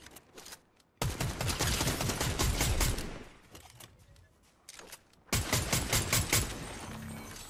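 Rapid gunfire bursts in quick volleys.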